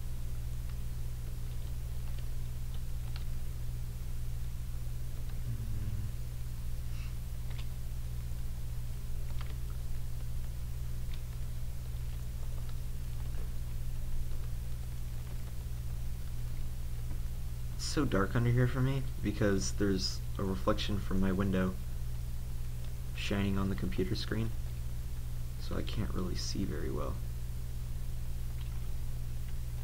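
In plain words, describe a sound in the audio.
Sand and dirt crunch softly as they are dug, again and again.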